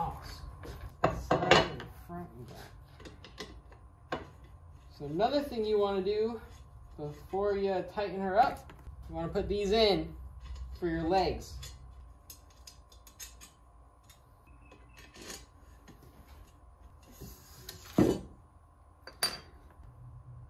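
Metal frame parts clink and knock on a wooden table.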